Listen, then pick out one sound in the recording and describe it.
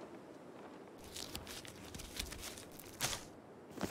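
A mushroom is pulled and torn off a tree stump.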